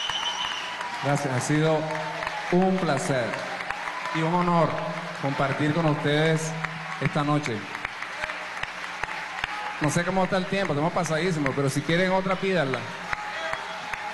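A man sings into a microphone in a large hall.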